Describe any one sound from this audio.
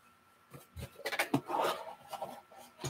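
Cardboard boxes scrape against each other as hands pull them apart.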